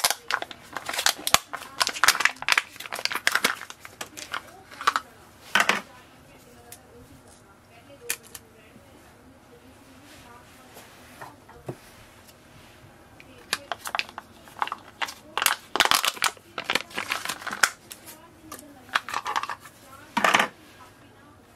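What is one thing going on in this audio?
Plastic wrapping crinkles and rustles as it is peeled off.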